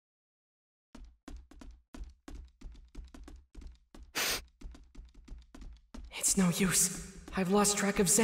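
Quick footsteps run across a wooden floor.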